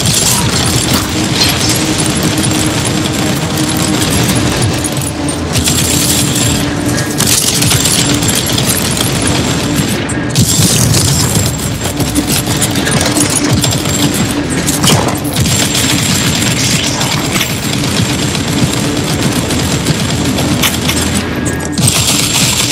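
Game weapons fire and blast rapidly in a dense clash of combat effects.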